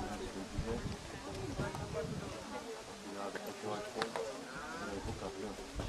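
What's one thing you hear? Horse hooves thud softly on soft ground.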